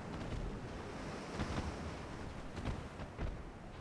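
Heavy ship guns fire in loud booms.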